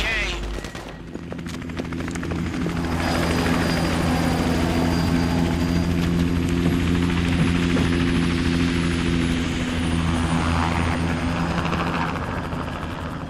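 A helicopter engine whines and its rotor thumps steadily nearby.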